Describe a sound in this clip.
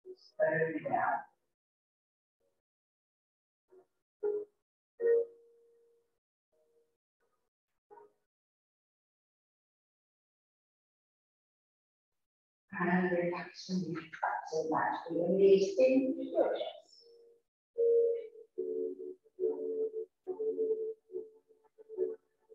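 A woman speaks calmly, heard through a microphone.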